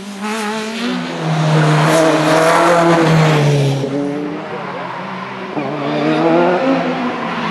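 A second racing car engine roars and revs as it passes by.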